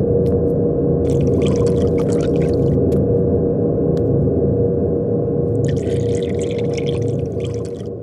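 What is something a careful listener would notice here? Glass and dishes clink softly on a table.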